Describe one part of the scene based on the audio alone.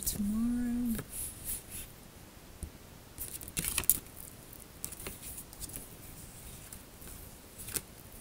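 A young woman whispers softly close by.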